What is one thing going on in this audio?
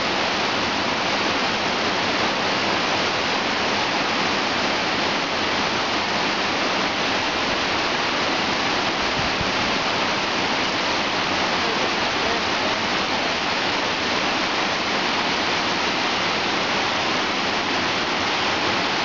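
Waterfalls rush and splash steadily.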